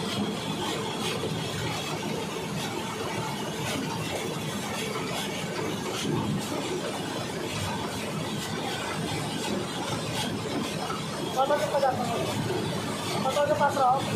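Liquid concrete pours and splashes steadily into a mould.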